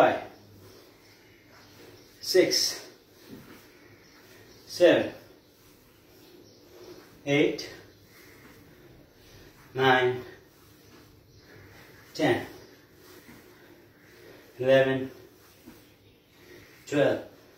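A man grunts sharply with each effortful move, at a steady pace.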